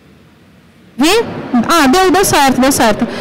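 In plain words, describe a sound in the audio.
A woman speaks with animation through a loudspeaker in a large hall.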